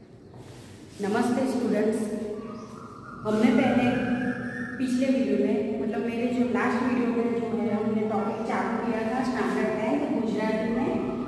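A woman speaks clearly and with animation, close by.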